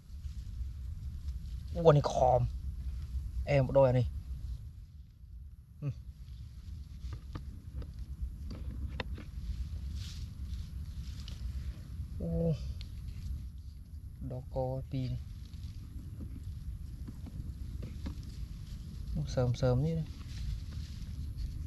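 Dry straw rustles as hands move through it.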